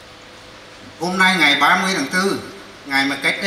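An elderly man speaks through a microphone over loudspeakers.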